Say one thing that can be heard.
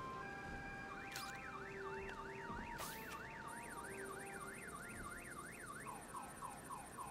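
An electronic scanner warbles rapidly up and down.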